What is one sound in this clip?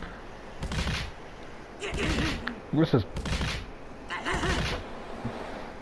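Blows land with dull thuds in a fight.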